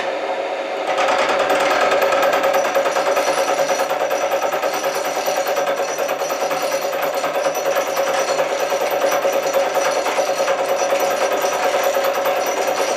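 A milling cutter grinds loudly into metal.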